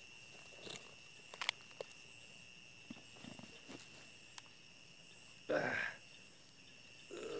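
Dry grass stalks rustle and crackle as a stick pokes through them.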